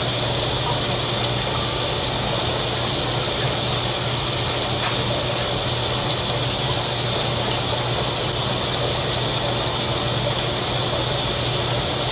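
Water runs steadily from a tap into a bowl.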